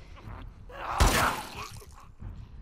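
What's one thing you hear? A gunshot bangs loudly and echoes.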